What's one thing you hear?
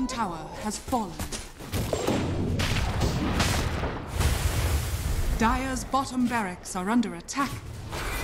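Magic blasts whoosh and crackle during a fight.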